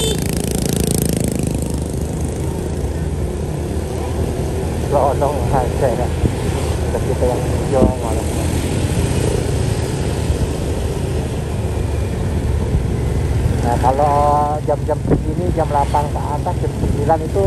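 Motorcycle engines hum steadily.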